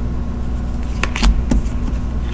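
A card taps down on a table.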